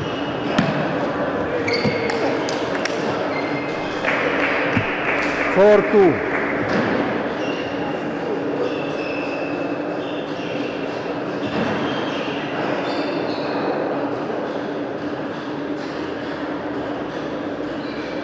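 A small crowd murmurs in a large echoing hall.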